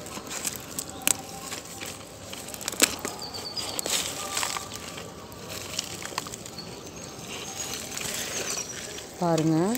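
Roots tear and soil crumbles as a beet is pulled from the ground.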